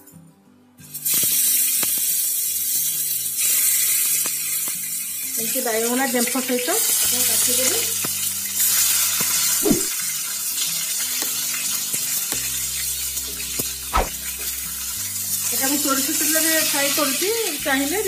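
Hot oil sizzles and crackles loudly as vegetables fry.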